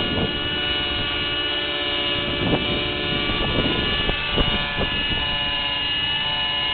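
A small model helicopter engine whines steadily at a high pitch.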